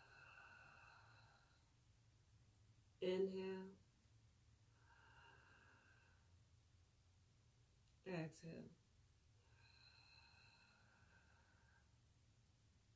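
A young woman breathes out slowly and deeply, close by.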